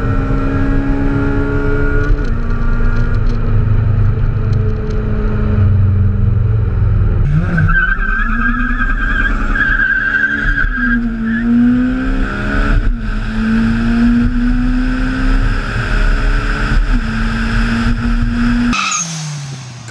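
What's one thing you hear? A car engine roars as it accelerates hard, rising in pitch and dropping with each gear change.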